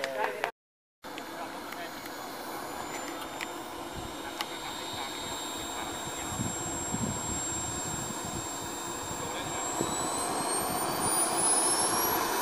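A small model jet engine whines steadily, then rises in pitch as it speeds up.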